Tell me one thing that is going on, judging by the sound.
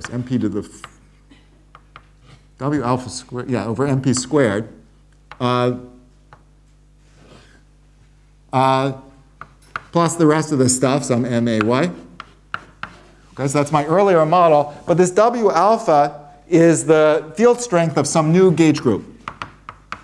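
An elderly man speaks calmly, pausing between phrases.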